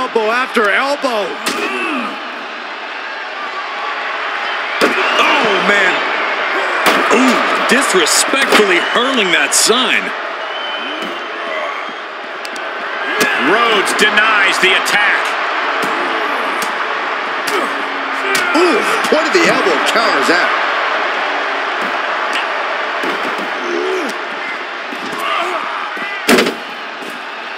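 Punches and slams land with heavy thuds.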